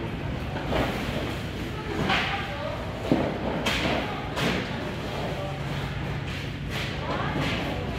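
Wooden crates knock and clatter as workers handle them.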